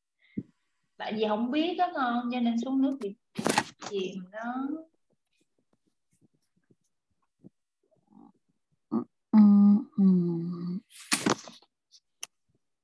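A woman speaks calmly and clearly, heard through an online call microphone.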